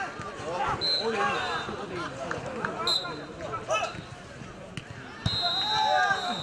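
Young men shout and call out across an outdoor field.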